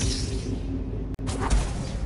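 A lightsaber hums and buzzes.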